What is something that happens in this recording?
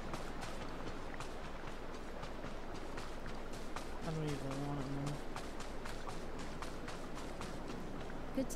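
Footsteps pad quickly along a dirt path.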